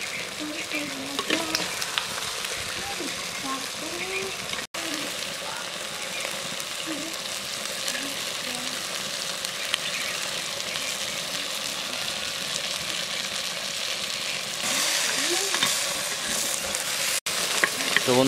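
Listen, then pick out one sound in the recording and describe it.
Meat sizzles and bubbles in a hot clay pot.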